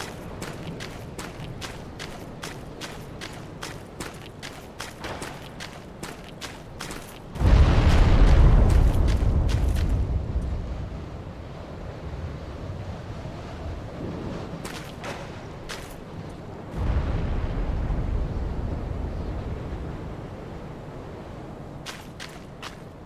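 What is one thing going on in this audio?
Armored footsteps crunch quickly through snow.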